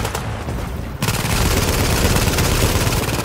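Rapid gunfire rattles nearby.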